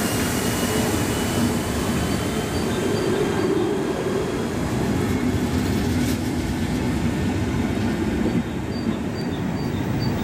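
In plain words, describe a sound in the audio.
Wheels squeal faintly on the track.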